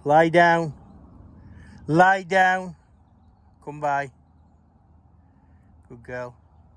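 A man calls out loudly and repeatedly close by.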